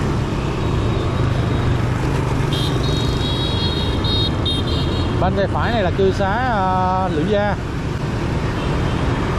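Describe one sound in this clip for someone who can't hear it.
Other motorbikes drive by on the street nearby.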